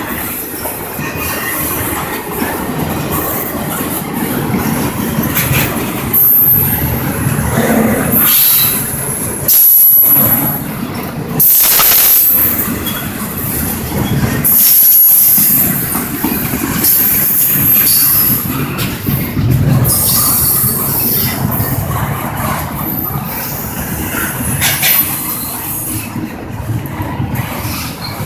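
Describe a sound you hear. Steel wheels squeal against the rails.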